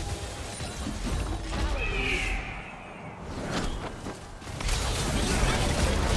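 Game sound effects of spells and attacks crackle and whoosh.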